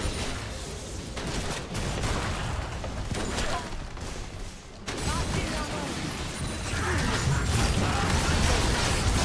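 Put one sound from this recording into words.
Game spell effects crackle and burst as characters fight.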